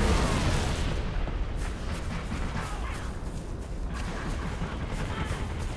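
Footsteps pad over dry grass.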